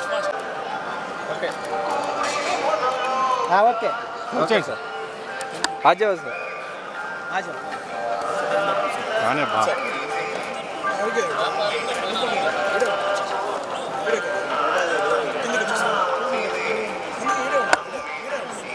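A crowd of people chatters nearby outdoors.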